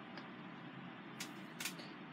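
Small objects click softly as they are handled.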